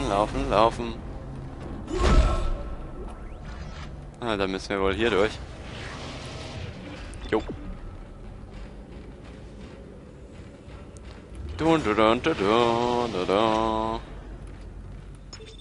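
Heavy metal boots clank on a metal floor.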